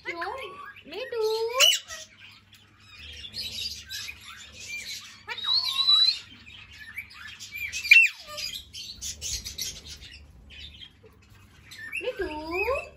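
A parrot squawks and chatters loudly close by.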